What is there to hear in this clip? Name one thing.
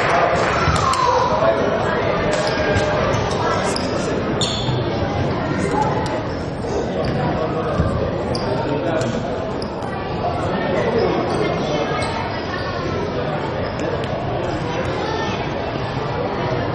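Young men shout to each other in an echoing sports hall.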